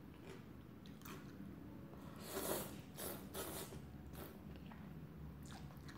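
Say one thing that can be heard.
A woman slurps noodles loudly, close up.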